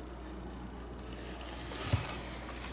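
A paintbrush dabs and swishes in wet paint.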